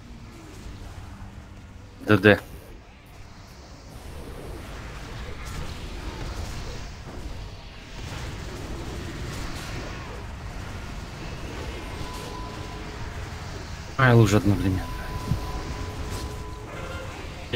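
Magic spells whoosh and crackle during a battle.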